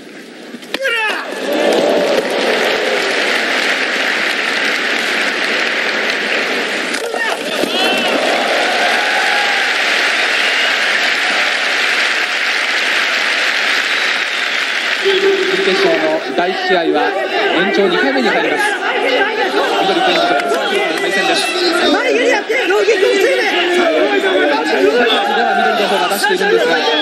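A large crowd cheers and roars in a big echoing hall.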